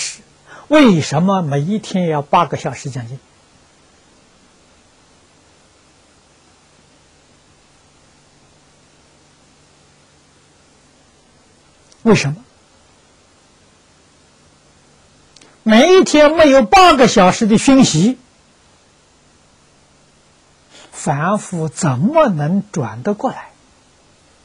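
An elderly man speaks calmly into a close microphone, pausing between phrases.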